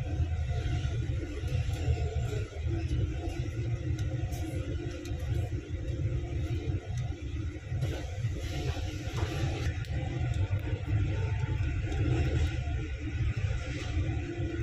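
A bus engine rumbles steadily from inside while driving.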